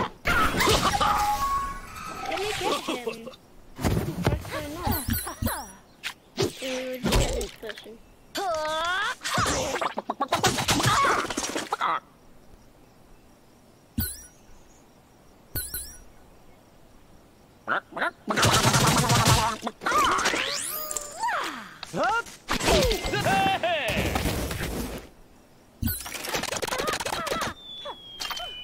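A young boy talks with animation, close to a microphone.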